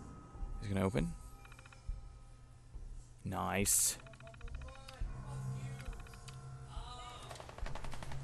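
A computer terminal chirps and clicks as text prints out.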